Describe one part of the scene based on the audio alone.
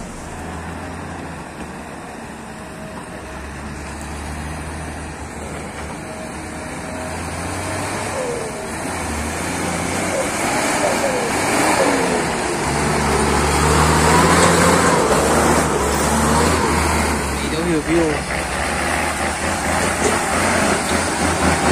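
A heavy truck engine rumbles as it drives closer along a muddy track.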